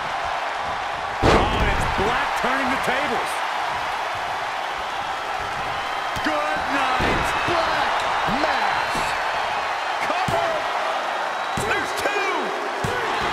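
A large crowd roars and cheers steadily in a big arena.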